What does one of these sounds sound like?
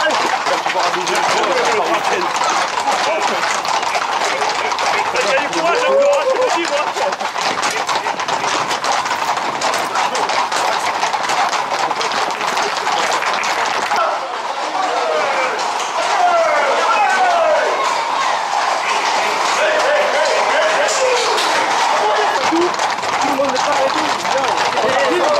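A crowd of men shouts and calls with excitement.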